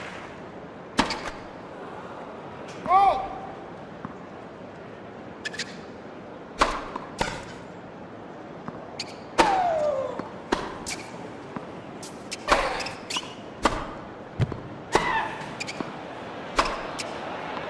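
Tennis rackets strike a ball with sharp pops.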